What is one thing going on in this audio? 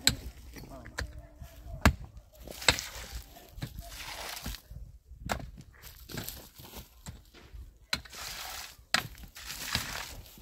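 Loose soil and gravel scrape and rustle.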